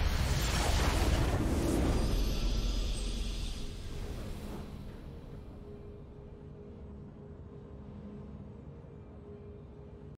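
A triumphant game jingle plays softly.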